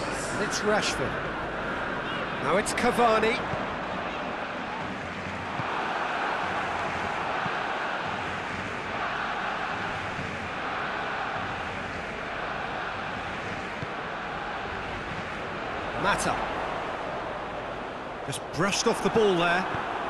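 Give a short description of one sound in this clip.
A stadium crowd murmurs and roars steadily throughout.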